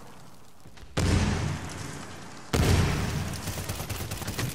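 A rifle fires in rapid bursts with loud booming shots.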